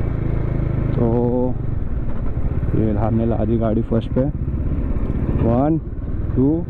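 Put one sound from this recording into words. A motorcycle engine revs up and down in quick bursts.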